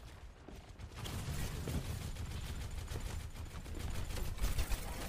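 A sharp whooshing rush sweeps past.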